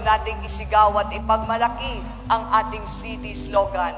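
A middle-aged woman speaks formally into a microphone.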